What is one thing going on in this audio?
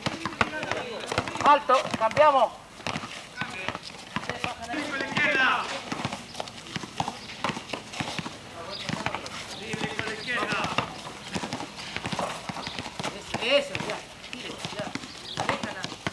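Boys shout and call out to each other outdoors.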